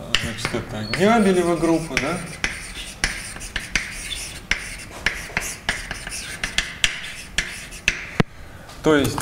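Chalk taps and scratches on a blackboard.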